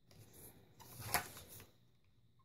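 A notebook page turns with a papery flip.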